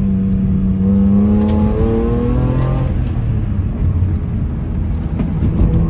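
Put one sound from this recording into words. A car engine hums and drones as the car drives along.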